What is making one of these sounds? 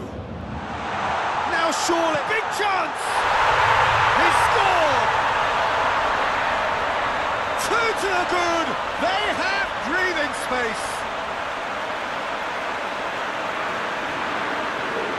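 A stadium crowd roars and cheers loudly.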